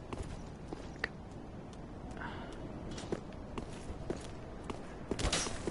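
Armored footsteps clank on stone at a steady walk.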